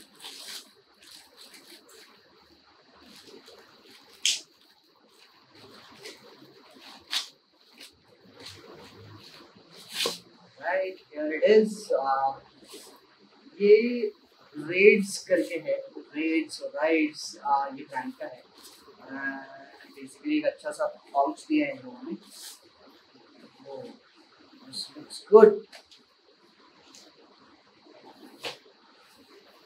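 A plastic package crinkles and rustles.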